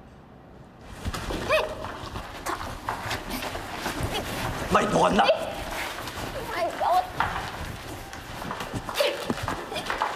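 Clothes rustle and bodies bump as two people struggle.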